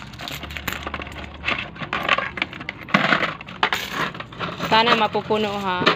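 Coins clink against each other.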